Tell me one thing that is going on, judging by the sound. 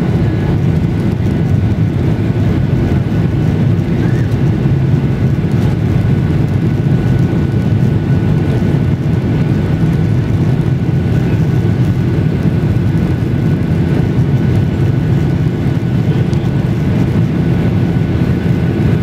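Jet engines roar steadily as an airliner taxis, heard from inside the cabin.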